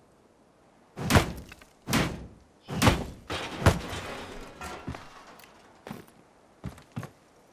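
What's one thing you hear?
Heavy blows thud against a wooden crate again and again.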